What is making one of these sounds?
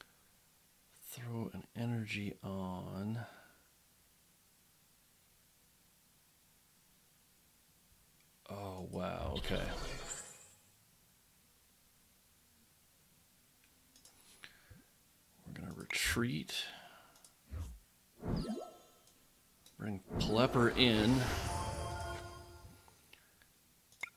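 A man talks casually into a close microphone, in short bursts.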